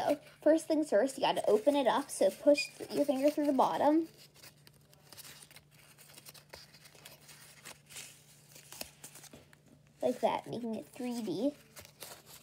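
Stiff paper crinkles and rustles softly between fingers.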